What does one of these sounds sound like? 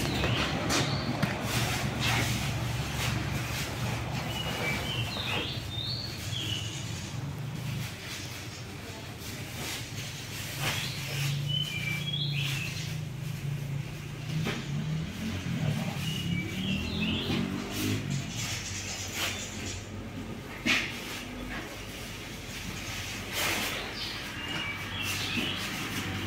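Plastic bags rustle and crinkle as they are handled close by.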